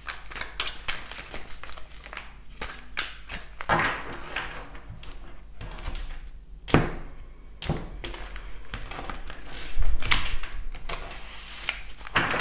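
Playing cards shuffle and riffle close by with quick rustling clicks.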